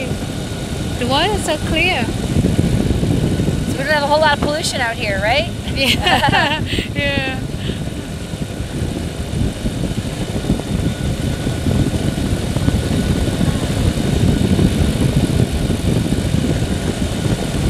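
A small aircraft engine drones loudly and steadily.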